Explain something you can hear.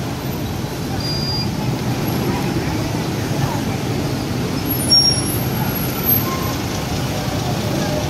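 Motorbike engines hum and idle nearby.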